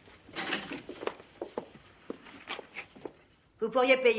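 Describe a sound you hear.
Objects knock and clatter as a case is handled.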